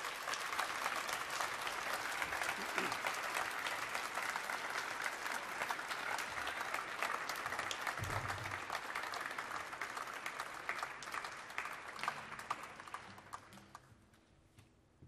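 A cello plays slow bowed notes.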